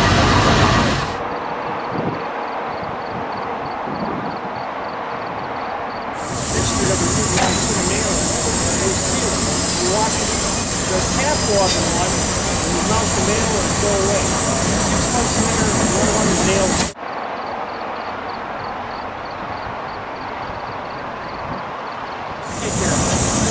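A steam locomotive chugs along the track in the distance.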